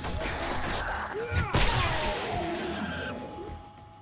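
A heavy club strikes with a dull thud.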